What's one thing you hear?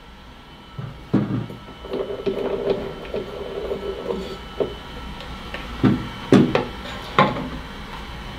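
Equipment clinks and knocks on a tabletop.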